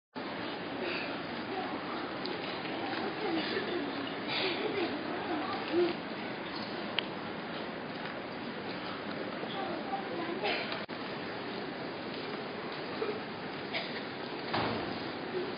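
A crowd of children murmurs quietly in a large echoing hall.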